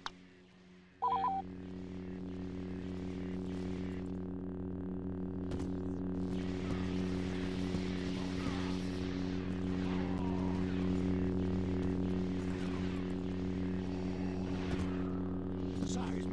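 A lightsaber hums steadily.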